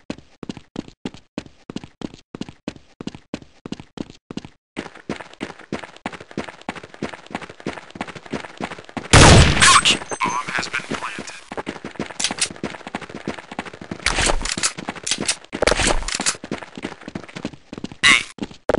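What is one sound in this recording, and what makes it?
Footsteps thud steadily and quickly on hard ground.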